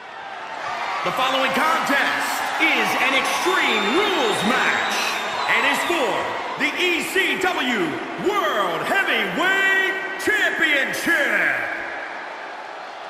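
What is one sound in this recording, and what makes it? A man announces loudly over arena loudspeakers.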